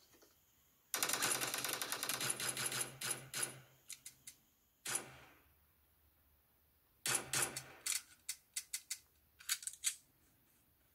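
Rapid bursts of gunfire ring out from a game on a phone.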